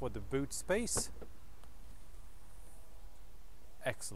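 A car's tailgate unlatches and swings open.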